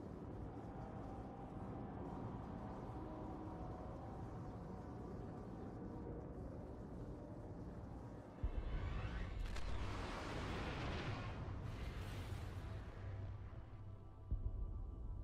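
A spaceship engine roars steadily and whooshes past.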